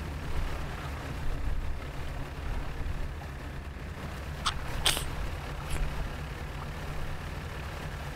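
A boat engine hums low and steady.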